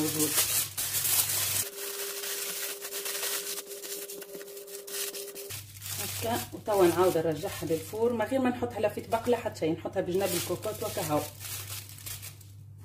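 Aluminium foil crinkles and rustles.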